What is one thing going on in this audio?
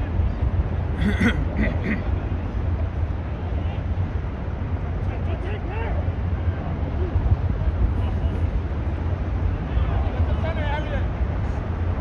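Young men shout to each other in the distance on an open field.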